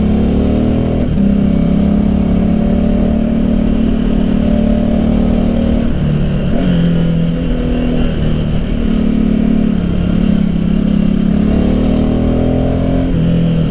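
A motorcycle engine hums steadily close by, shifting pitch as it speeds up and slows.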